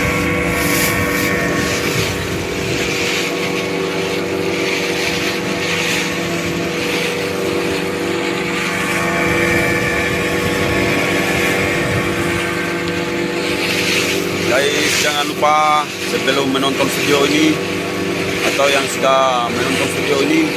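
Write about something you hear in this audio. Water splashes and rushes against the hull of a moving boat.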